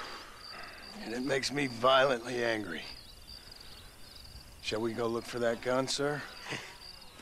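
A man speaks in a deep, calm voice close by.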